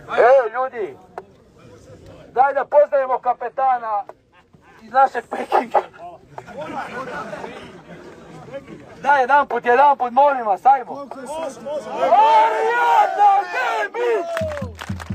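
A man shouts chants through a megaphone.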